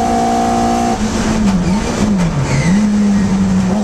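A racing Hillman Imp engine drops and climbs in pitch as the driver brakes and shifts gears.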